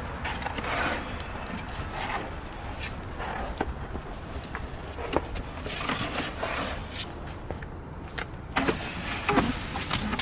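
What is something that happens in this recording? A plastic tub knocks and scrapes.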